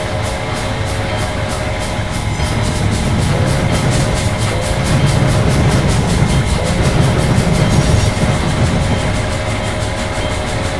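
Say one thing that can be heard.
Train wheels clatter rhythmically on the rails.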